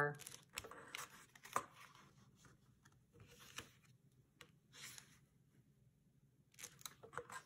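Paper rustles as it is folded.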